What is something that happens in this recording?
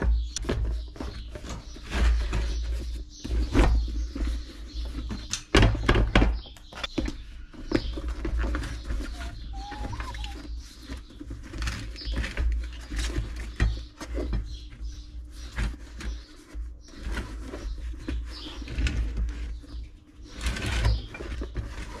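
Rubber squeaks and thumps as a tyre is worked onto a wheel by hand.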